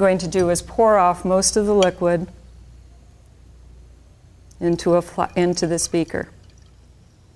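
A middle-aged woman speaks calmly and clearly into a microphone.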